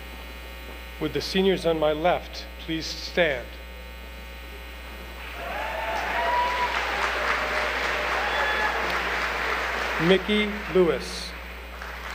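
A man announces names over a loudspeaker in a large hall.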